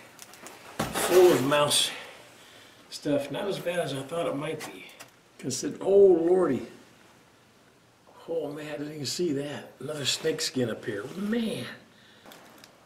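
An elderly man speaks calmly and close by.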